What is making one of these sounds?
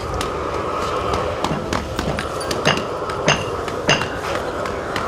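Metal tools clink and knock nearby, outdoors.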